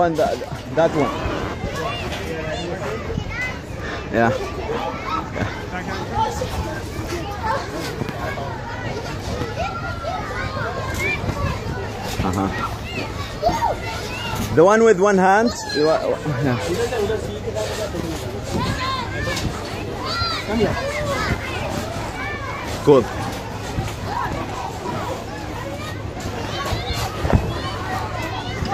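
Children shout and chatter nearby.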